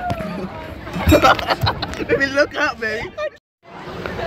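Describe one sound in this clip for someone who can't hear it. A woman laughs excitedly close by.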